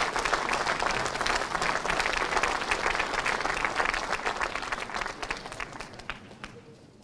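An audience claps and the applause slowly fades away.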